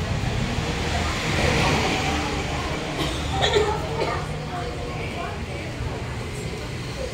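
A ceiling fan whirs steadily overhead.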